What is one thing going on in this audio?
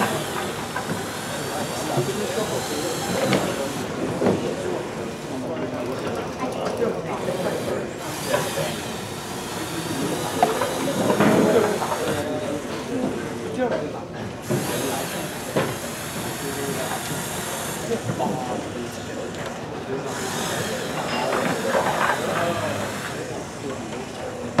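A small robot's electric motors whir as it drives.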